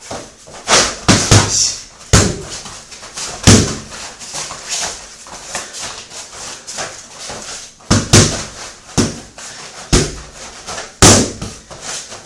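Boxing gloves smack hard against padded focus mitts in quick bursts.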